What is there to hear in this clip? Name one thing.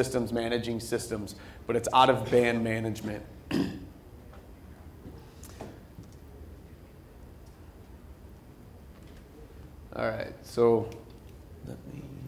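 A man speaks calmly through a microphone in a large room, with pauses.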